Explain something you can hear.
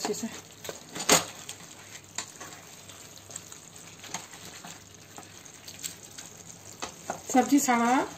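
A spatula scrapes and knocks against a frying pan.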